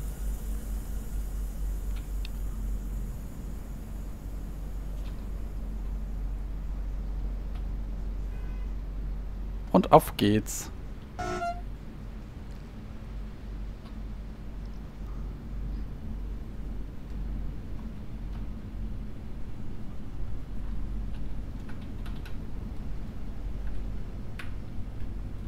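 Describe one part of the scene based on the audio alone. A train rumbles slowly along the tracks.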